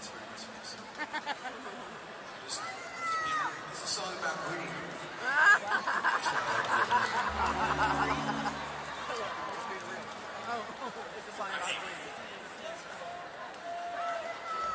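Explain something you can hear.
A crowd cheers and whistles loudly in a large open arena.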